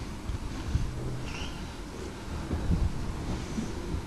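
A bird's wings flap as it takes off.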